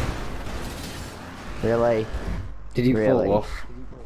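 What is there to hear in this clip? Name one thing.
A car crashes with a thud.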